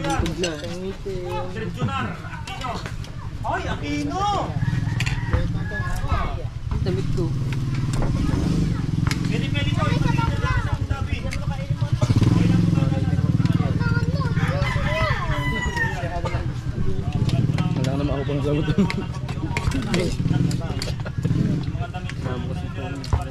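Several men talk casually close by.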